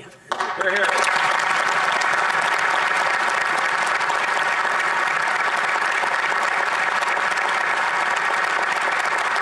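A large crowd applauds loudly in a big echoing hall.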